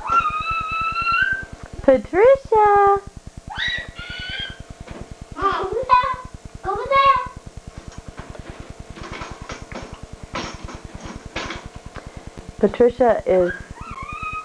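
A baby babbles and squeals close by.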